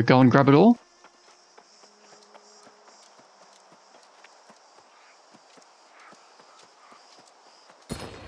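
Footsteps pad steadily over grass and dirt.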